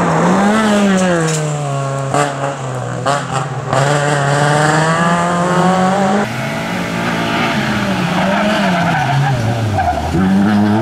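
A small car engine revs hard, its pitch rising and falling as the car speeds through tight turns.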